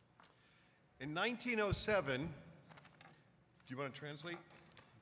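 Another older man speaks briefly into a microphone.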